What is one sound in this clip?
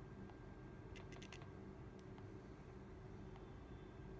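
Soft taps click on a phone's touchscreen keyboard.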